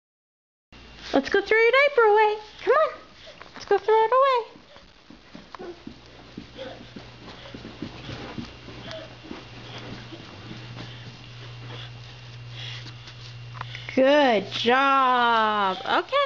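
A toddler squeals and babbles excitedly close by.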